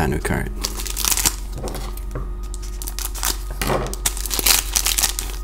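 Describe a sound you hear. Scissors snip through a plastic wrapper.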